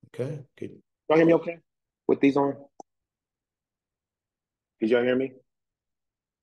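A man speaks calmly over an online call, in short phrases with pauses.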